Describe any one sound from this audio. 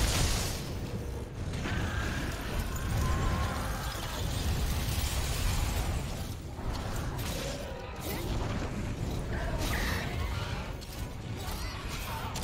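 A heavy blade swings and strikes with sharp metallic hits.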